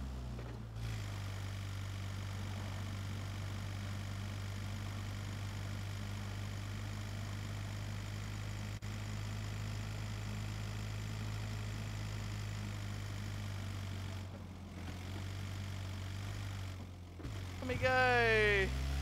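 A van engine hums steadily as it drives over rough ground.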